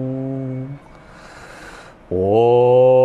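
A man breathes in deeply close to a microphone.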